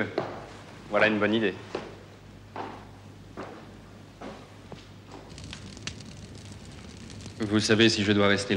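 A man speaks.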